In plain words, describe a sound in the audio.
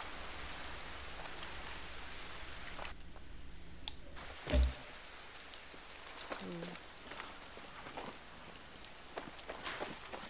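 Footsteps tread softly on stone paving.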